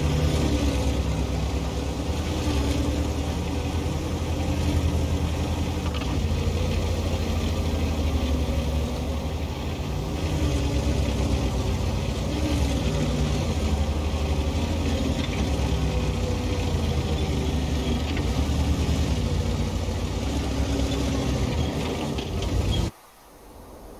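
A heavy tank engine rumbles loudly.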